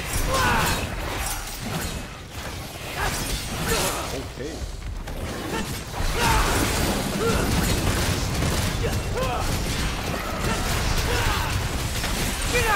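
Blades slash and strike with sharp metallic hits.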